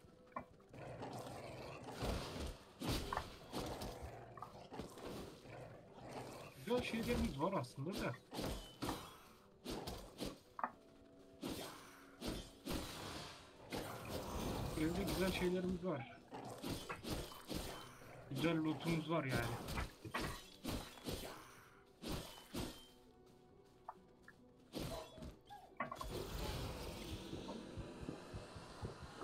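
Blades slash and thud against flesh in quick bursts.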